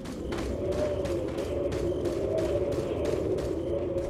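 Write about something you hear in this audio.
Footsteps run over hard ground.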